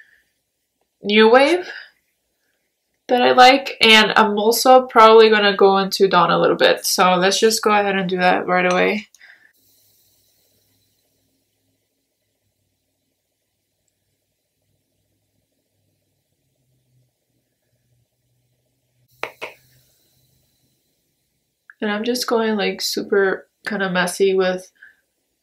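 A young woman talks calmly and close to a microphone.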